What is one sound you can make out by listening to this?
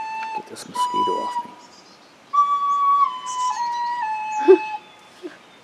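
A girl plays a few stepped notes on a toy whistle pipe.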